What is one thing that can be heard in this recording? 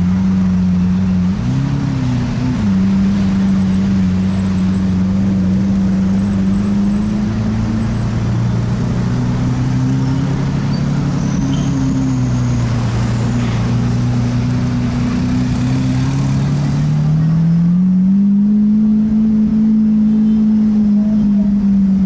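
A car engine hums steadily, its pitch rising as the car speeds up.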